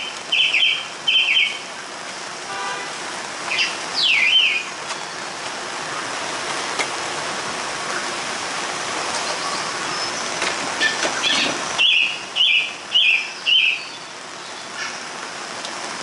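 Rain patters steadily on umbrellas and wet paving outdoors.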